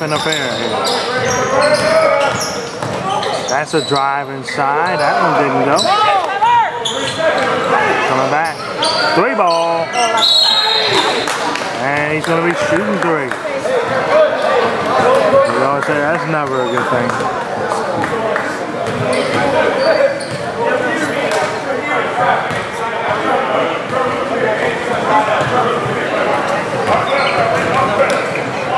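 Spectators shout and cheer in an echoing gym.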